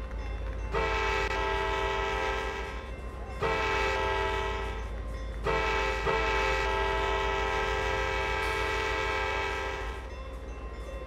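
A train horn blows in long, loud blasts close by.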